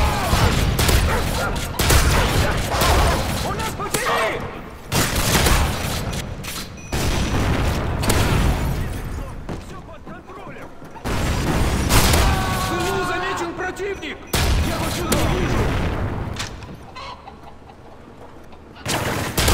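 An automatic rifle fires in bursts of sharp shots.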